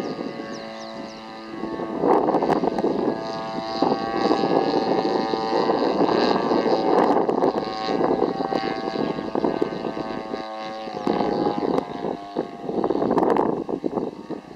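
A model airplane engine buzzes high overhead, rising and falling in pitch as it loops.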